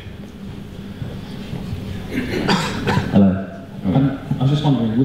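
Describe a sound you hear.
A man speaks into a microphone through a loudspeaker, in a large echoing room.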